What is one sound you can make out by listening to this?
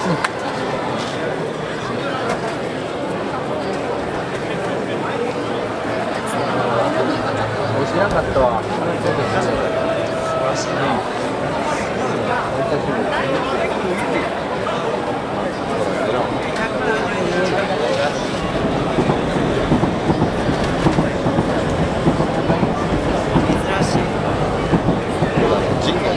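Men in a festival procession chant and shout together.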